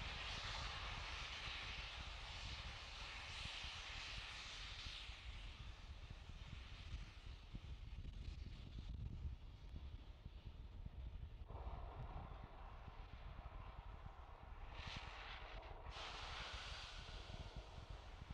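Vapor vents with a hiss from a rocket on its launch pad.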